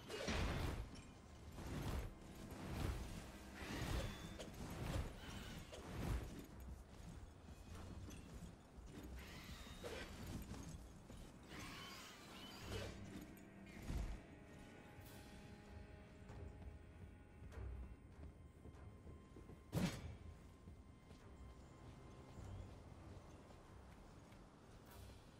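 Armoured footsteps run over stone and tiles.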